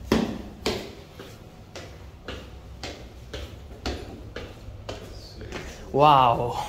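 Footsteps climb hard stairs at a steady pace.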